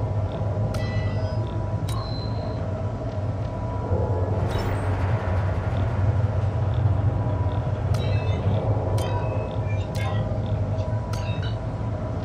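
Short electronic clicks sound now and then.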